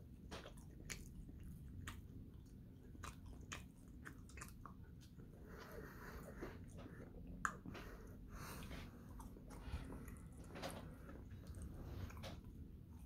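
A young man chews food close by with wet smacking sounds.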